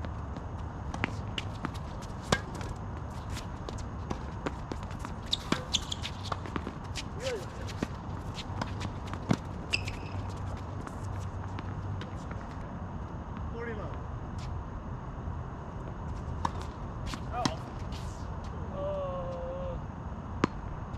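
Tennis balls are struck with rackets in a sharp, irregular rally.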